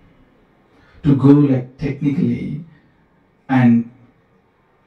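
A man speaks calmly and with feeling into a microphone.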